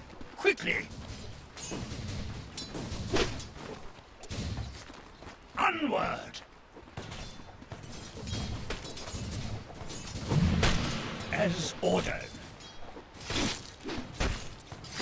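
Weapons clash and strike repeatedly in a fight.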